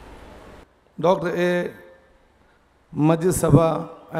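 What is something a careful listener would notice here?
A man speaks calmly through a microphone and loudspeakers, with some echo.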